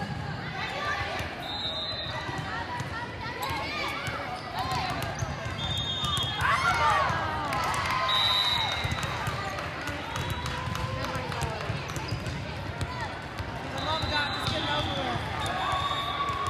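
Young women's voices call out and chatter across a large echoing hall.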